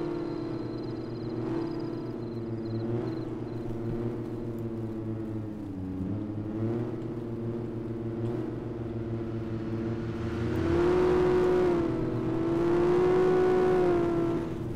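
A car engine hums steadily and rises and falls in pitch as the car speeds up and slows down.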